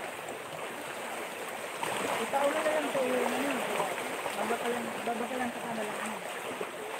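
Small waves splash against rocks close by.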